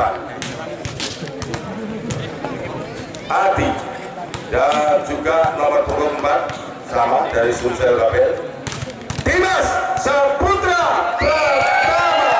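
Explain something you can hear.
A volleyball is struck hard with a slap.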